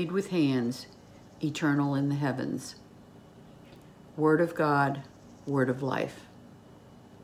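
An elderly woman speaks calmly and slowly, close to a microphone.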